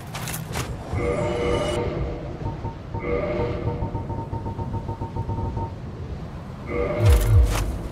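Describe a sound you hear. Short chiming menu tones sound as selections are made.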